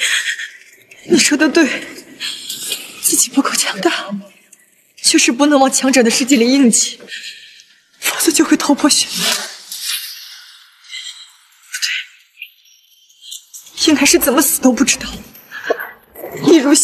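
A young woman speaks tensely and pleadingly, close by.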